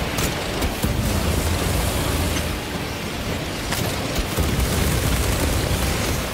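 A flamethrower roars with bursting fireballs.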